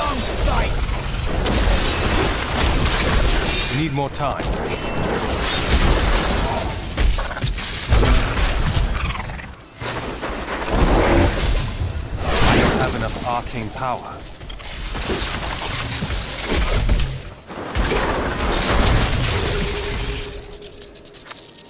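Spells crackle and explode in a game battle.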